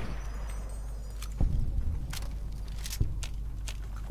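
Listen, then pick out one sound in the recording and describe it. A rifle is reloaded with sharp metallic clicks.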